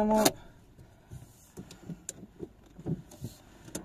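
Hands rub and tap on a steering wheel.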